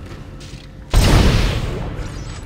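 A gun fires a single loud blast.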